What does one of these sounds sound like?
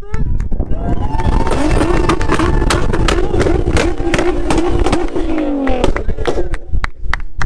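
A sports car engine roars loudly as it drives past.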